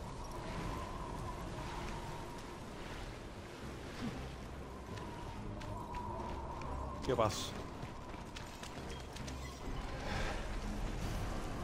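A sword slashes and clangs against armour.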